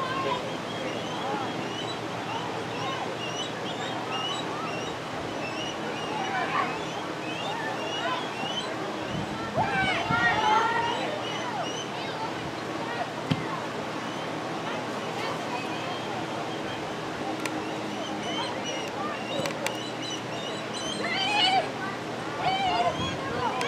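Spectators chatter and call out outdoors in an open space.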